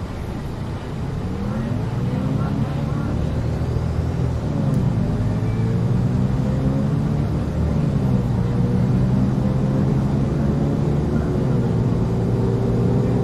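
A bus engine revs up and rises in pitch as the bus pulls away and gathers speed.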